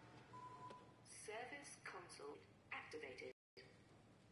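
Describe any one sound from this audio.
Electronic beeps chirp quickly.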